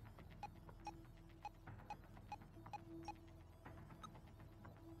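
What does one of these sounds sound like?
Short electronic beeps sound again and again as a selection moves.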